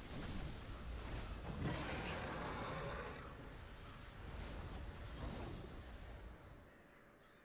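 Strong wind roars with blowing snow.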